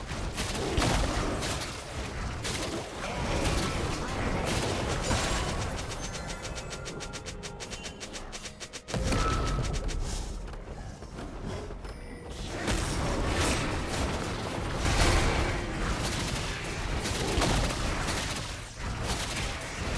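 Game spell effects whoosh and blast in bursts.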